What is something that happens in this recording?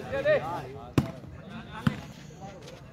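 A volleyball is struck with a sharp slap.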